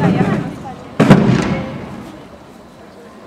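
A musket shot cracks and echoes across an open space.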